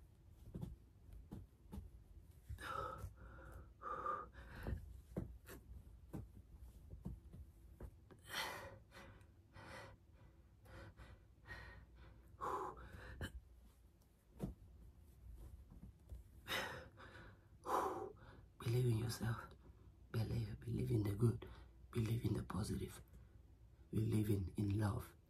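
A young man talks breathlessly close by.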